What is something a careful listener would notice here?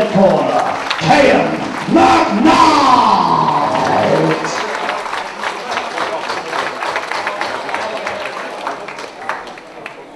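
A crowd claps in a large echoing hall.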